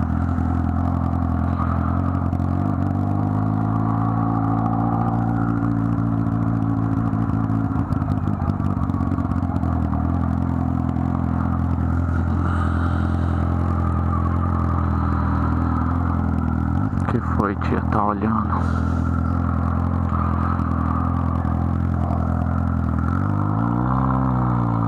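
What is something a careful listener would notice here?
A motorcycle engine idles and putters steadily close by.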